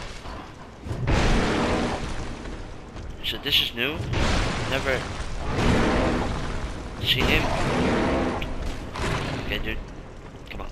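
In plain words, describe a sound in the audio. A large creature roars and growls loudly.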